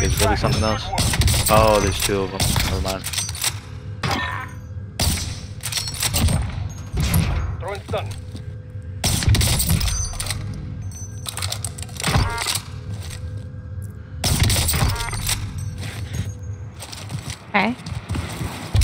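Heavy rifle shots boom and echo.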